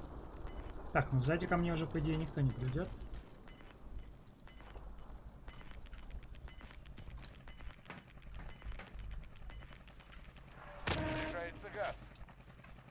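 A young man speaks briefly into a close microphone.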